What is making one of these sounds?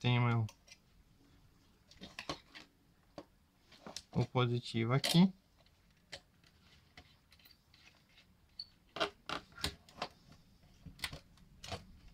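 A screwdriver clicks and scrapes against small metal screws.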